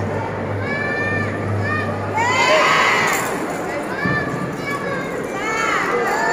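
A crowd murmurs in the stands.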